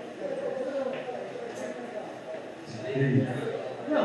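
A cue tip strikes a ball.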